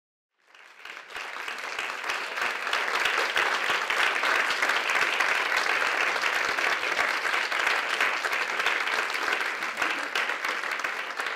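A crowd applauds steadily in a large room.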